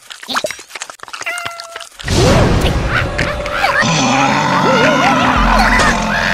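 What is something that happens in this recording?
A cartoon creature laughs loudly.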